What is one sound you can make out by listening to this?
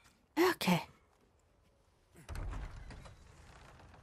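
A heavy wooden door thuds and creaks as it is shoved open.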